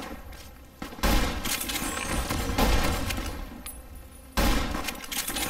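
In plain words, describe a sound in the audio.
A shotgun fires loud blasts a few seconds apart.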